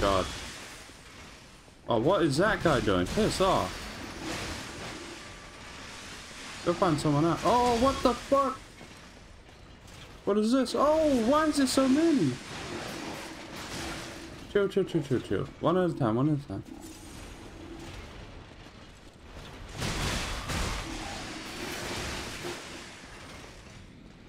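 Metal blades clang and strike in quick bursts.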